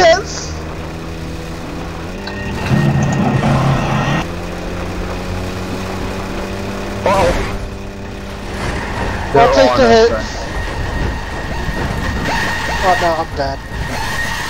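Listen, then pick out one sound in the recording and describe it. A game vehicle's engine hums steadily.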